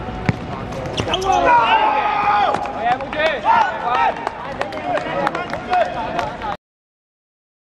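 Young men shout excitedly outdoors.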